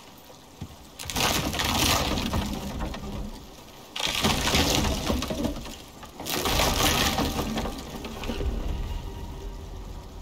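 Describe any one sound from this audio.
Wooden logs clatter and tumble onto a pile.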